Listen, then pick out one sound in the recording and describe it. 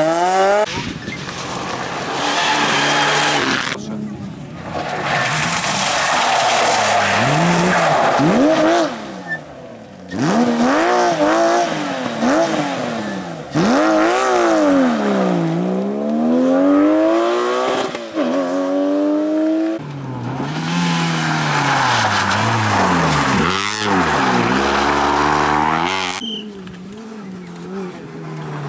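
Rally car engines roar and rev hard, rising and falling as the cars race past.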